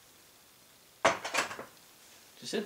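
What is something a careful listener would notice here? Metal clanks sharply as a tool is handled.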